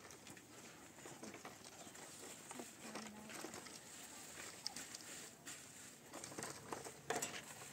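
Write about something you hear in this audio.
Fabric rustles as a woman handles cloth and bags.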